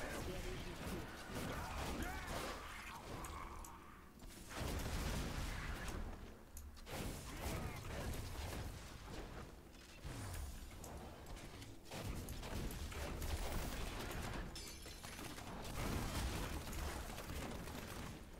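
Spell blasts and explosions crackle and boom in a game.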